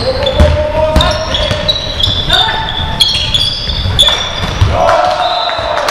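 A basketball bounces with dull thuds in an echoing hall.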